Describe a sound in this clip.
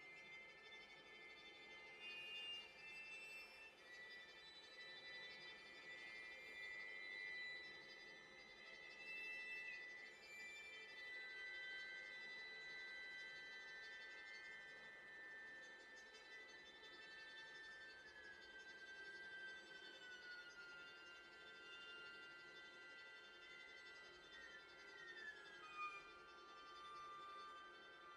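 A cello plays low, bowed notes.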